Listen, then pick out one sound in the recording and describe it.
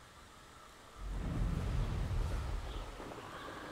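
Wind rushes loudly past a flying broom.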